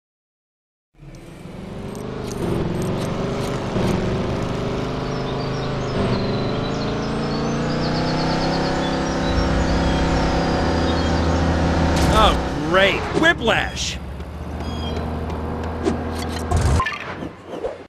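A car engine hums steadily and revs as the car drives.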